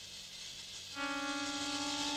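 A reed pipe plays a steady high note.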